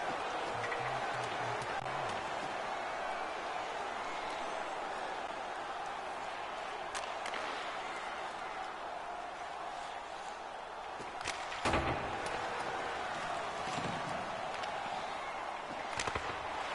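An arena crowd murmurs and cheers throughout.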